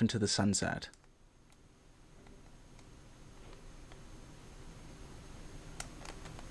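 A cardboard package crinkles softly in a man's hands.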